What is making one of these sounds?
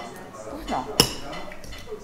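A knife and fork clink against a plate.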